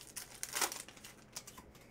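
A wrapper crinkles as a pack is torn open.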